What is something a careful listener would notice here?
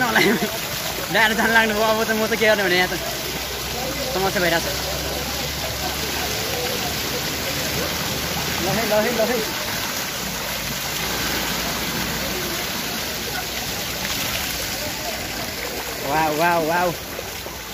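Young men talk and call out loudly nearby, outdoors.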